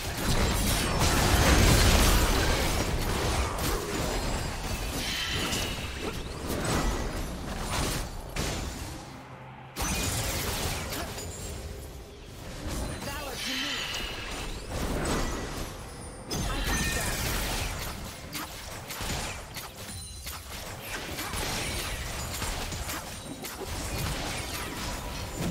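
Video game combat effects crackle, whoosh and clash.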